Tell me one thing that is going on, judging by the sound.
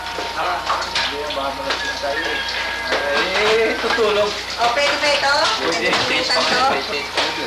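Glasses and bottles clink.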